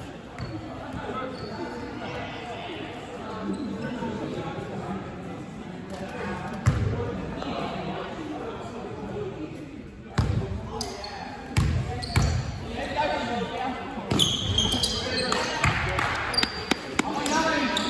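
A basketball bounces on a wooden court in a large echoing gym hall.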